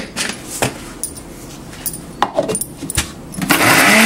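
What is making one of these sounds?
A plastic lid clicks onto a grinder jar.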